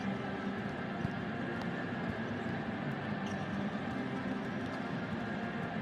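A volleyball is struck during a rally in a large echoing hall.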